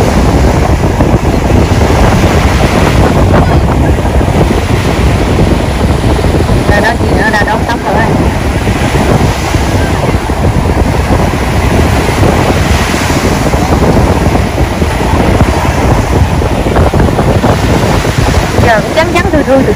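Ocean waves break and wash in the surf.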